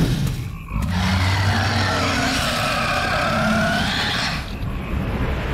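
A huge creature lets out a loud, rumbling roar.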